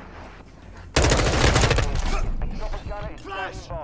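Rapid gunfire rattles in close bursts.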